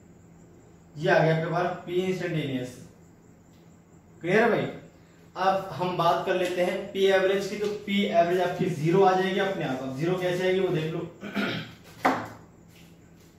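A man speaks calmly, explaining, close by.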